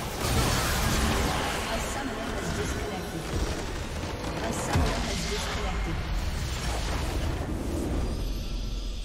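Magic blasts and crashes ring out in a loud battle.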